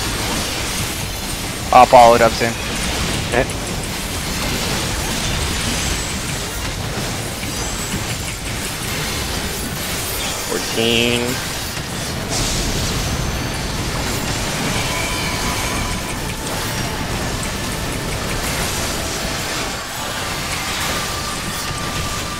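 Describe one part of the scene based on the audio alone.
Fantasy battle sound effects crackle and whoosh as spells are cast.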